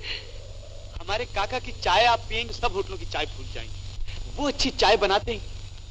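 A man talks with animation.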